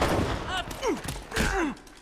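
Footsteps run up stone steps.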